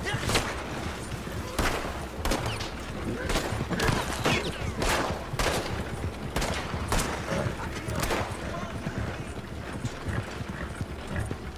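Wooden wagon wheels rattle and creak over a dirt track.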